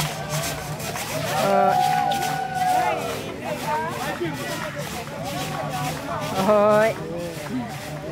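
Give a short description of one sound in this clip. Several women shout and cheer with excitement.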